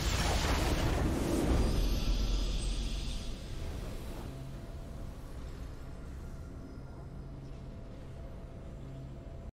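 A game's victory fanfare swells and then fades.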